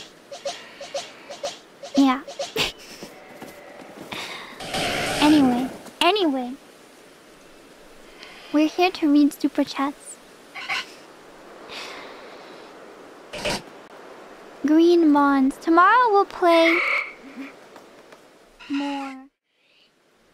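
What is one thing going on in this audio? A young woman speaks animatedly and playfully into a close microphone.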